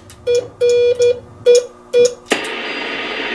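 A radio receiver sounds short beeping tones.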